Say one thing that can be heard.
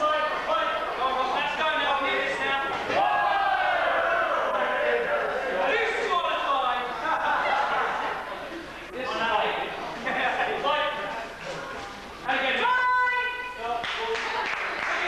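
Several men shout and talk loudly in an echoing hall.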